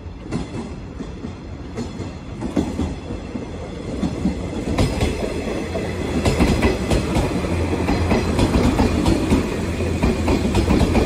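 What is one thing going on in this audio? An electric train approaches and rumbles past close by, growing louder.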